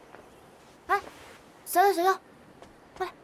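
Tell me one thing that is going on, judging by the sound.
A young woman calls out brightly, close by.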